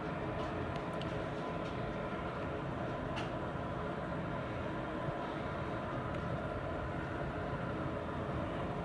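A city's traffic hums steadily far below.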